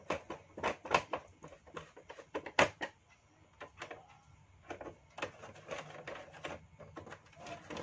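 A screwdriver clicks and scrapes against a plastic panel.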